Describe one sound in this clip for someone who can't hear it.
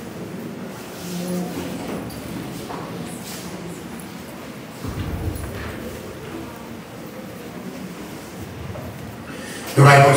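Men talk quietly at a distance.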